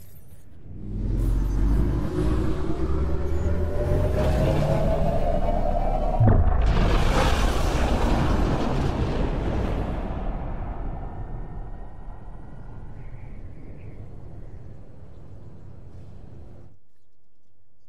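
A spaceship's engines roar loudly as it flies overhead, then fade into the distance.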